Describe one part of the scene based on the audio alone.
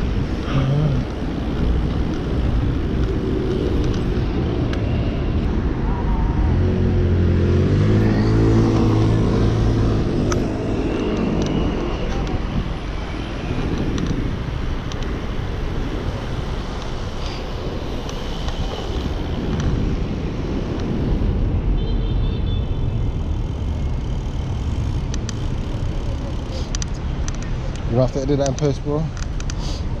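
Wind rumbles against the microphone of a moving bicycle outdoors.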